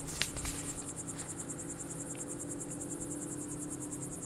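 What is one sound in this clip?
Boots step softly on grass and earth.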